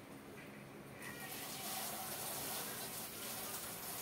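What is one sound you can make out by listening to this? Water runs from a tap into a sink.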